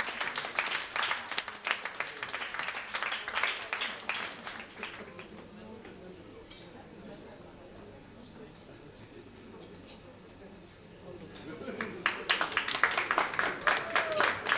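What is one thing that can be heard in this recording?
An audience claps and cheers in a room.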